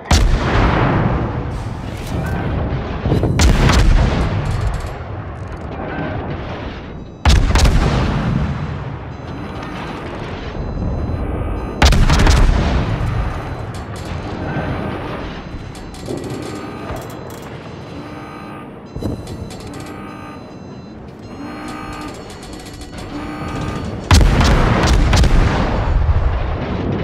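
Heavy naval guns fire with deep booming blasts that rumble away.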